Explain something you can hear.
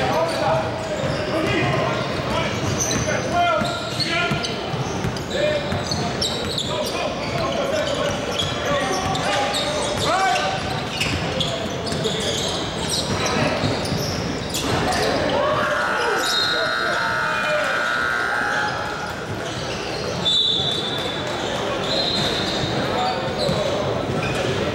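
Young men shout and call out to one another across the court.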